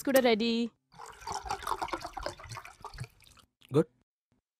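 A drink is poured into a glass.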